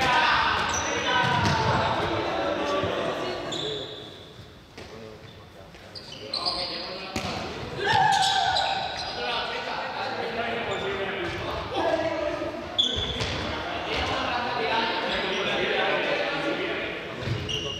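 Young people shout and call out to each other in a large echoing hall.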